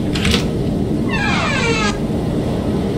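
A wooden door creaks slowly open.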